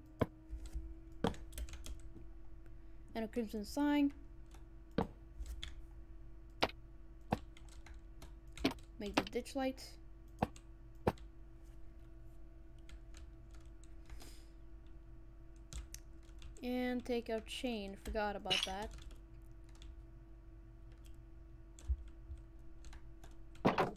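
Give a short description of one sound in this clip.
Blocks are placed with short, soft clicks.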